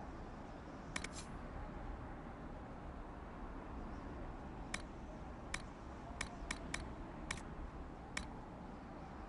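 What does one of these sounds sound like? Short soft clicks sound as menu options are selected.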